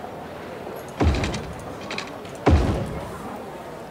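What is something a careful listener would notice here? A heavy thump sounds as a track section is placed.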